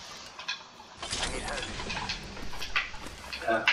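A metal crate lid swings open with a clank.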